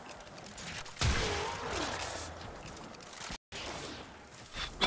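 Loud energy weapon strikes whoosh and crash in bursts.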